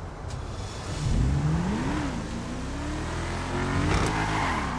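A car engine starts and revs up and down.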